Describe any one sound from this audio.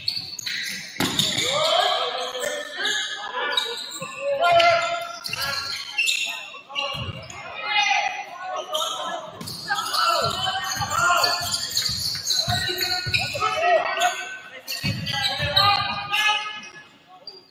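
Sneakers squeak sharply on a wooden court floor.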